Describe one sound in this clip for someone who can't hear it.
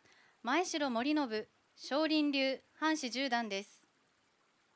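A young woman speaks clearly into a microphone, announcing in short phrases.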